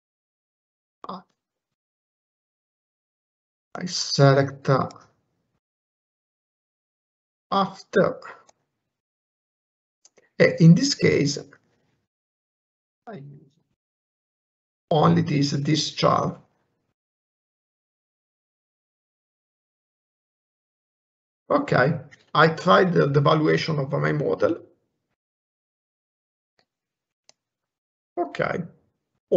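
A man speaks calmly in short phrases, close to a microphone.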